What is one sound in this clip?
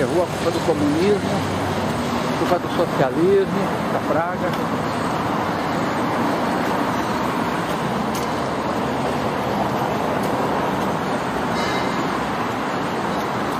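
Traffic rumbles steadily along a nearby street, heard outdoors.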